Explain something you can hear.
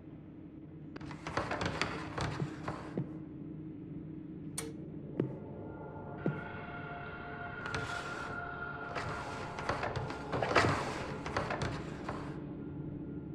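Metal drawers slide open with a scraping rattle.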